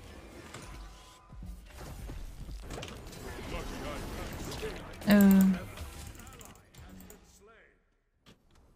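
Game spell effects whoosh and crackle in a battle.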